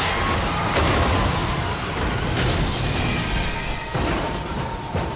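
Metal scrapes and crashes with sharp impacts.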